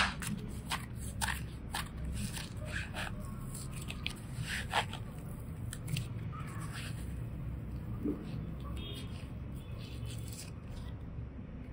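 Soft clay squishes and stretches between fingers.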